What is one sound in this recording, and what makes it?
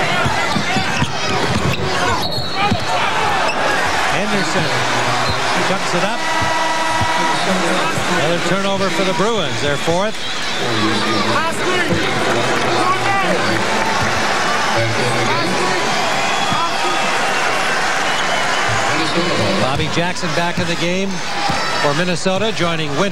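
A large crowd murmurs and cheers in a big echoing arena.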